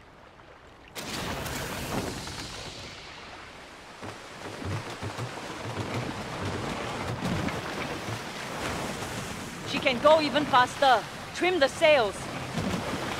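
Waves splash and wash around a small sailing boat.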